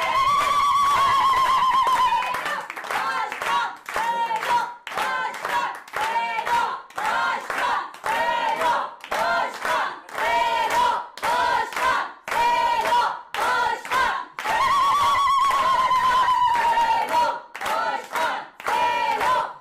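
A woman sings loudly.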